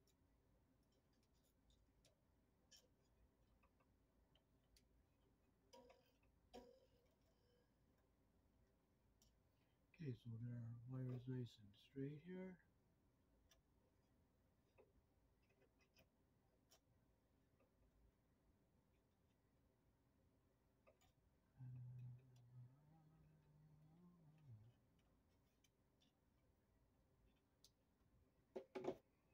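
Small metal tools click and tap against a wire box.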